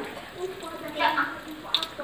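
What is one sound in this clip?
Hot oil sizzles and bubbles in a pan.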